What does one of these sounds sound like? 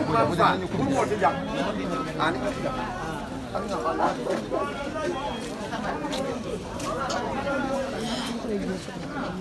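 A crowd of women and men chatter loudly nearby.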